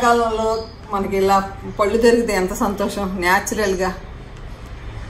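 An elderly woman speaks warmly and with animation close to a microphone.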